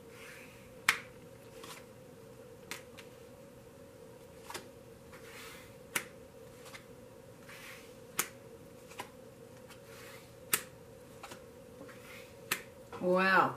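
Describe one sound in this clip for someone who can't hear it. Cards are laid down one by one on a table with soft taps.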